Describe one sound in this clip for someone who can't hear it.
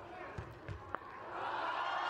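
A volleyball is struck with a sharp slap.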